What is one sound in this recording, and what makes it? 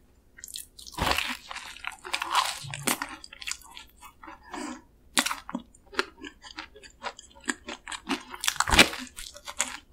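A chocolate-covered pastry crunches as it is bitten, close to the microphone.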